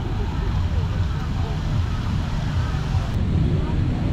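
Young children chatter softly nearby.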